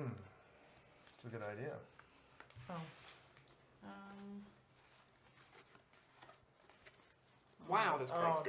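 Playing cards shuffle and slap softly.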